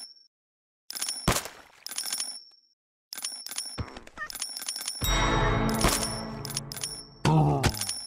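Game coins jingle in quick chiming bursts.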